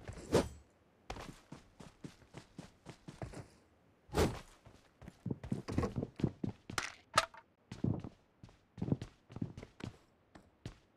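Footsteps run quickly over grass and hard floors.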